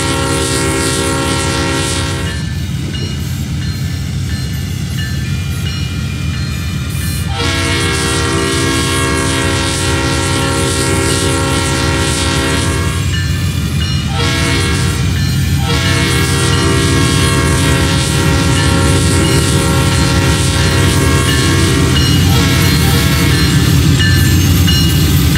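A train horn sounds in long blasts.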